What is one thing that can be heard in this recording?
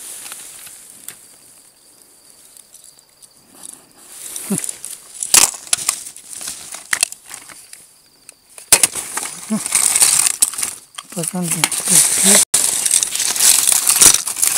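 Plastic toys knock and rattle as a hand handles them, close by.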